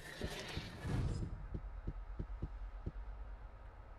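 Footsteps thud on a rocky floor.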